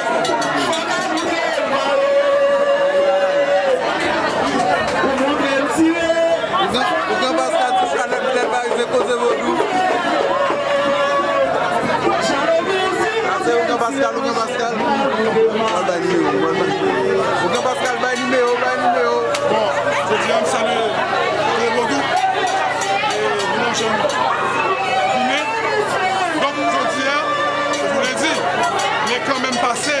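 A crowd sings loudly together.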